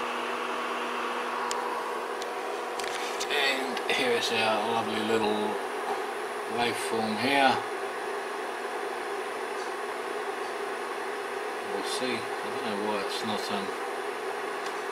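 A transformer hums steadily.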